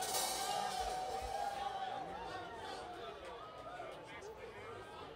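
Drums beat in a steady rhythm.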